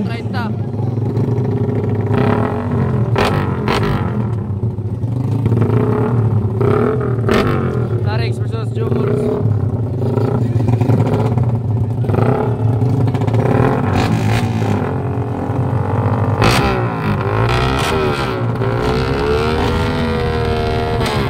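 A motorcycle engine idles nearby.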